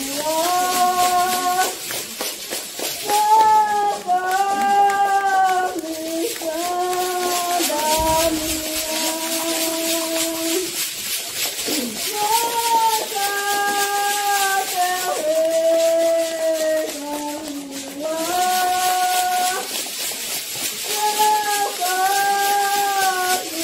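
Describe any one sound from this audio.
A group of people sing together.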